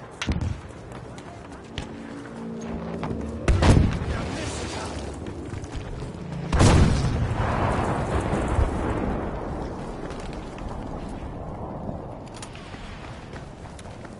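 Footsteps crunch quickly over stone and gravel.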